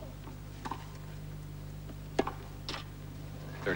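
A tennis ball is struck with sharp pops of a racket.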